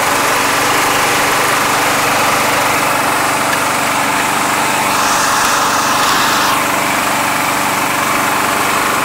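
A lawn mower engine runs steadily close by.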